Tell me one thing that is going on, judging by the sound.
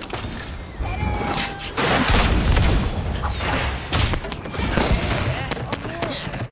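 Game sound effects whoosh and crackle in bursts.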